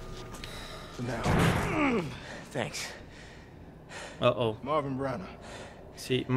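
A man speaks in a low, weary voice.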